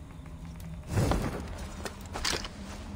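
A soft whoosh sweeps past twice.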